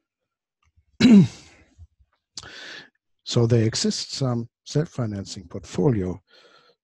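A man lectures calmly, close to a microphone.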